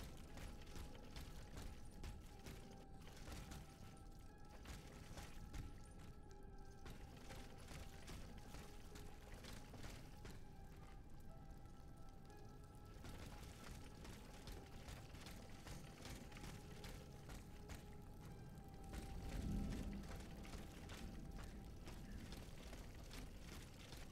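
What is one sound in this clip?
Footsteps patter quickly on wet stone.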